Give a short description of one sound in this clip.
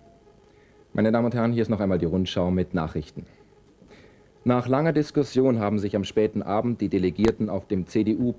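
A man speaks calmly and clearly, as if reading the news into a microphone.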